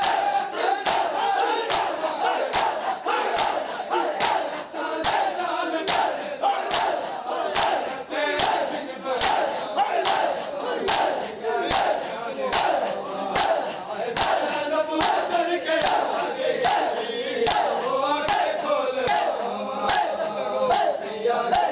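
A crowd of men chants loudly together in time with the beat.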